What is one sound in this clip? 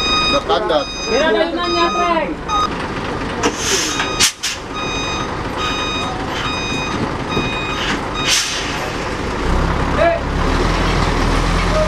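A truck engine rumbles and strains, growing louder toward the end.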